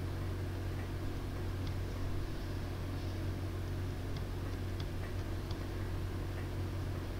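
A large machine hums with a steady low drone.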